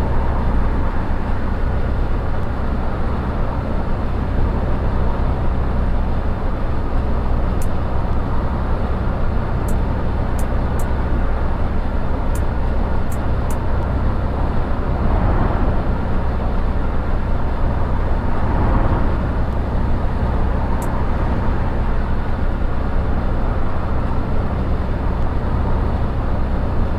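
Tyres roll on a road with a steady rush.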